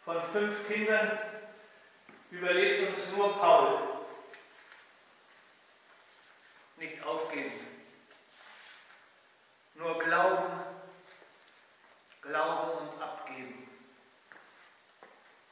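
An elderly man reads aloud in a slow, chanting voice in an echoing hall.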